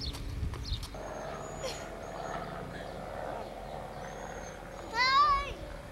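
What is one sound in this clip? Metal swing chains creak as children swing.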